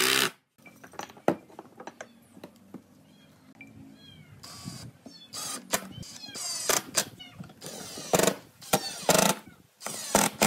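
A cordless drill whirs in short bursts, driving screws into wood.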